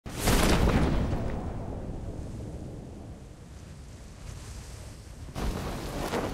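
Wind rushes past loudly, then slowly dies down.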